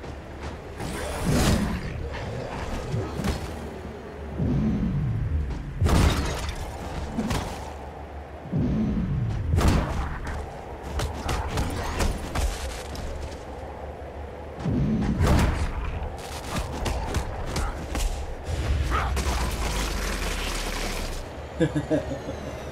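Blades swish and strike hard in a close fight.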